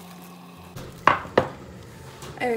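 A glass dish knocks against a hard counter.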